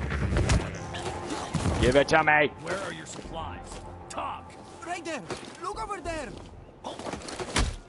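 Heavy blows thud during a close scuffle.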